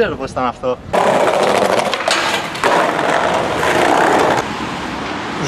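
A skateboard grinds along a metal rail.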